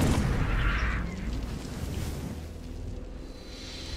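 A lightsaber hums and clashes in a fight.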